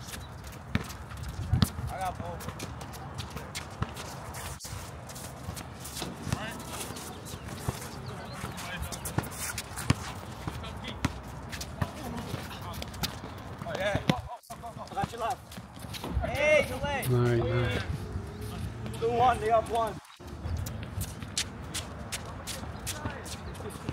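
A basketball bounces on an outdoor court.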